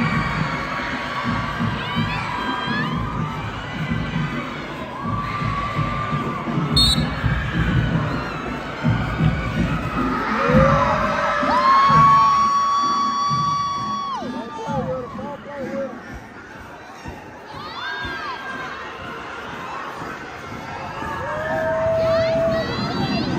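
A crowd cheers and shouts nearby.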